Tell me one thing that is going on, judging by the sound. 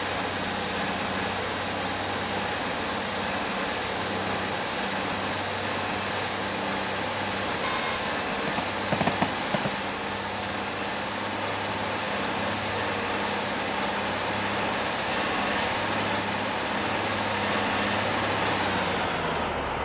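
A diesel multiple-unit train drones along at speed.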